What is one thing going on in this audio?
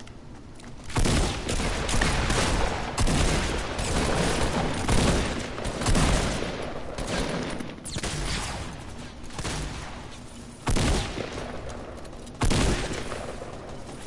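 Gunfire bursts and explosions boom loudly.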